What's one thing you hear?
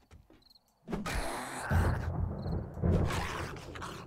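A wooden club thuds heavily into a body several times.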